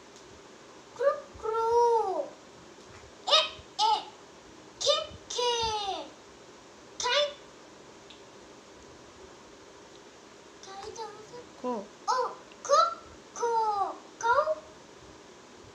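A young boy speaks loudly and clearly in short phrases, close by.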